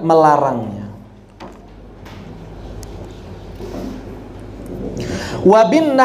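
A man speaks calmly and slowly into a microphone, with long pauses.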